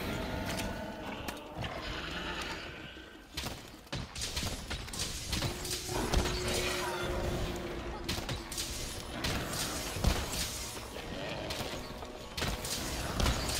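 Metal weapon strikes clang.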